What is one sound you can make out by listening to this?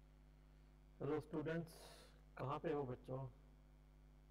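A man speaks briefly and calmly over a microphone.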